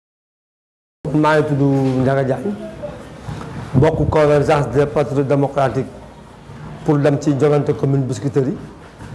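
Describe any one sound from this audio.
A man speaks calmly and closely into a clip-on microphone.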